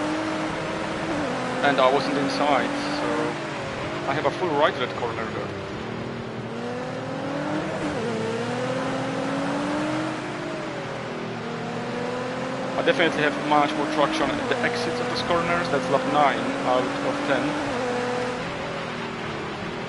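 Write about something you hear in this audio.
A racing car engine roars and rises and falls in pitch as it shifts gears.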